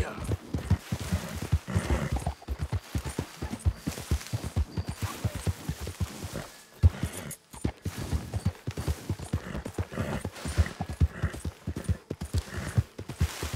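A horse gallops over soft ground, its hooves thudding rapidly.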